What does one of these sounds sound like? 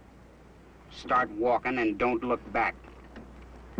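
An elderly man speaks gruffly close by.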